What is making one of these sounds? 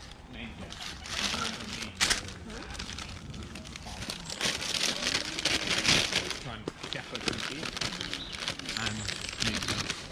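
A paper bag crinkles and rustles as it is handled.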